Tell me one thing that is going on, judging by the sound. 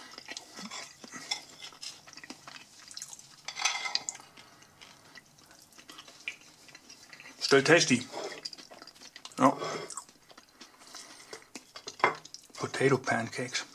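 A fork scrapes and clinks against a ceramic plate.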